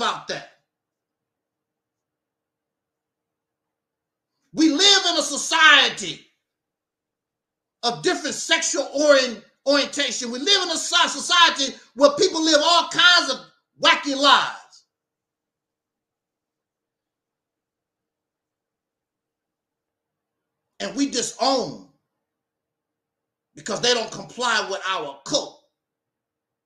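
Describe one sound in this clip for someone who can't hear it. A middle-aged man speaks with animation into a microphone, in bursts separated by pauses.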